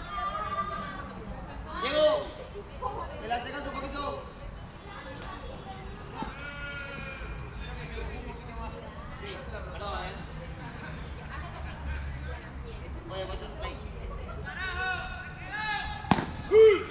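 Men talk and call out outdoors.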